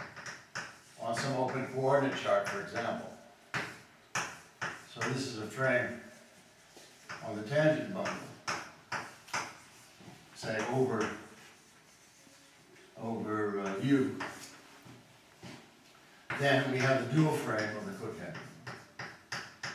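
An elderly man speaks calmly, lecturing.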